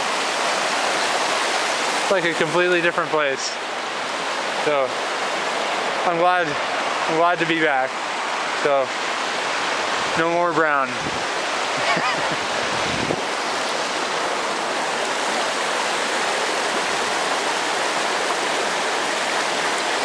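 Fast water rushes and splashes steadily nearby.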